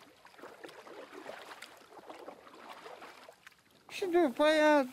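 Oars creak and splash in the water with a slow rowing rhythm.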